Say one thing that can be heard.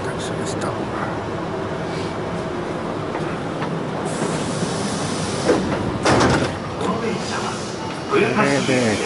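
A train rumbles steadily and fades.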